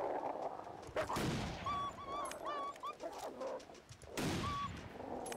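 A rifle fires two loud shots that echo outdoors.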